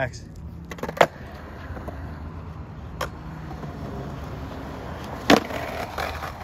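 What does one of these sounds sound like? A skateboard snaps and clacks sharply against a ledge.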